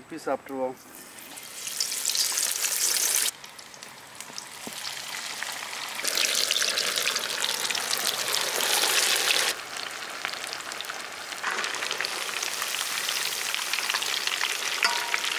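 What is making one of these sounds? Hot oil sizzles and bubbles loudly in a pan.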